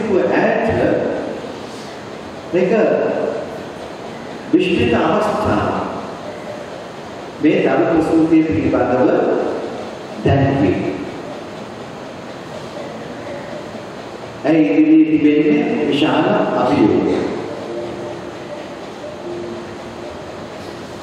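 A man speaks slowly and calmly through a microphone in a large echoing hall.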